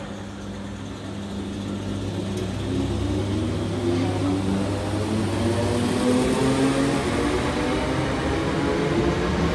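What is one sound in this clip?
Train wheels rumble and clatter over the rails, growing louder.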